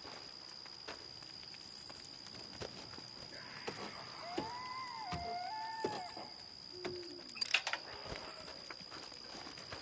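A campfire crackles nearby.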